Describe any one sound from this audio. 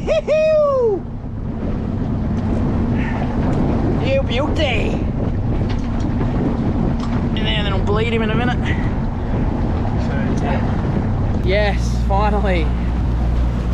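A young man calls out excitedly in short bursts, close by.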